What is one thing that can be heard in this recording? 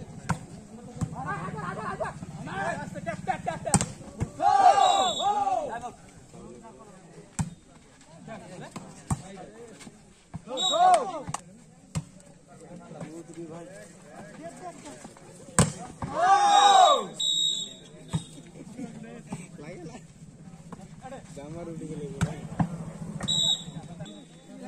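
Young men shout and call out loudly outdoors during a ball game.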